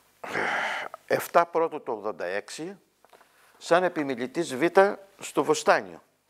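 An elderly man reads aloud calmly, close to a microphone.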